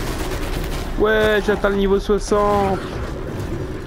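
A mechanical beast lets out a loud, wavering roar.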